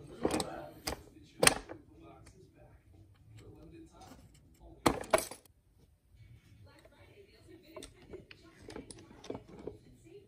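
Metal gearbox parts click and clink as a hand moves them.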